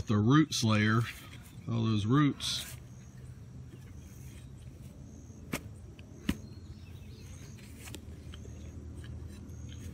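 A shovel scrapes and chops into soil.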